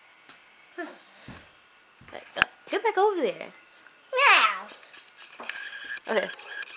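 A young child squeals and talks excitedly close by.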